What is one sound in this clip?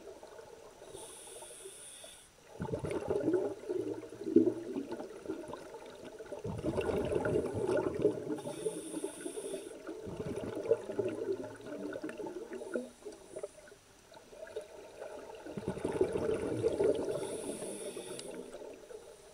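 Divers breathe in with a hiss through their regulators.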